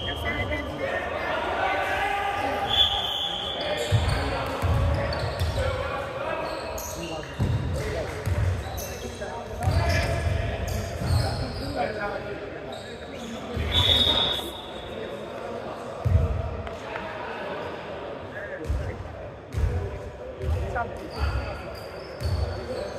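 A basketball bounces with hollow thuds in an echoing gym.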